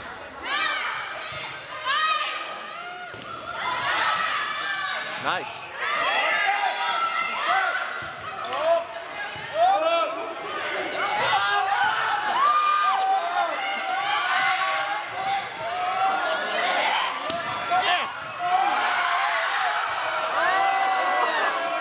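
A volleyball is struck by hands.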